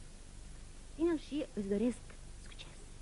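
A woman speaks to a child through a microphone.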